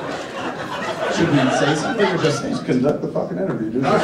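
A younger man speaks with animation into a microphone over loudspeakers.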